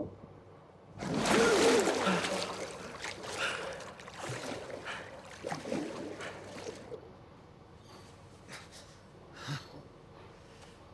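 A young man groans and gasps in pain, close by.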